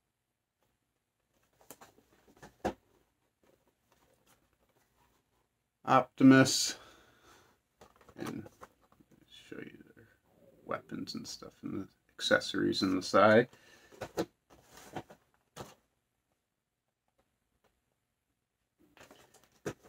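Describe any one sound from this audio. Cardboard packaging rustles and taps in a man's hands.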